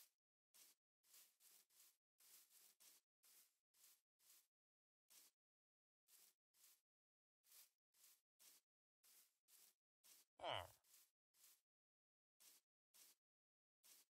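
Footsteps crunch softly on grass in short, uneven bursts.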